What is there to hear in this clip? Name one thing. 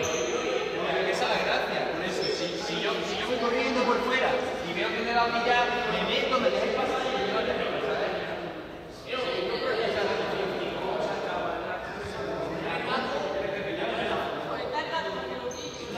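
Young men and women chatter and call out to each other in a large echoing hall.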